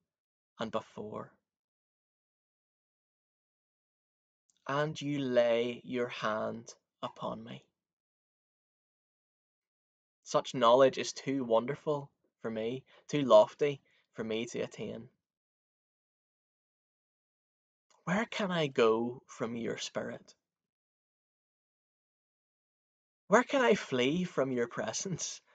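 A young man speaks calmly into a microphone close by, with pauses.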